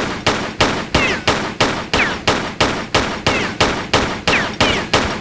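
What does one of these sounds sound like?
Bullets ricochet off metal with short whines.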